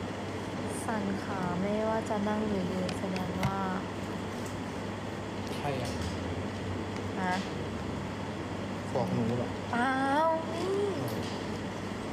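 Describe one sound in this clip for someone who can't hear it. A young woman speaks close to a phone microphone.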